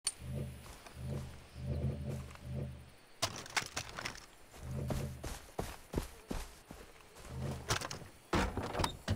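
Footsteps thud on hollow wooden boards.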